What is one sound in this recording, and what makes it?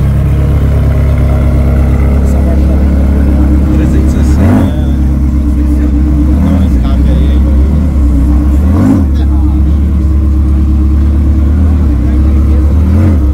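A sports car engine idles with a deep, loud rumble close by.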